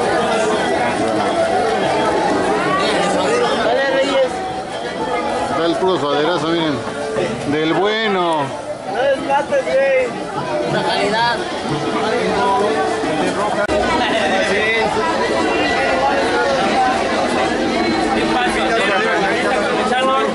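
A crowd chatters throughout.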